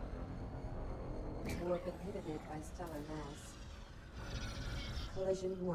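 A spaceship engine roars with a steady low rumble.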